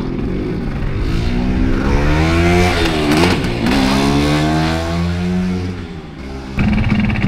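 A scooter engine revs up and down in the distance.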